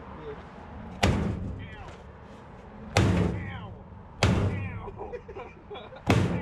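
A heavy hammer strikes metal with loud ringing clangs.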